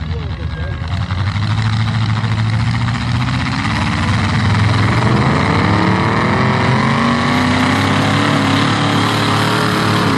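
A truck engine revs loudly as the truck drives through mud.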